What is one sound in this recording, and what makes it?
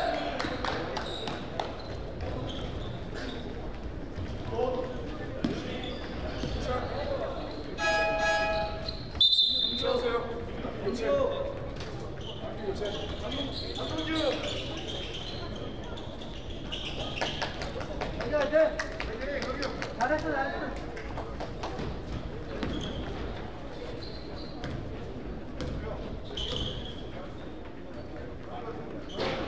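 Young players call out across a large echoing gym.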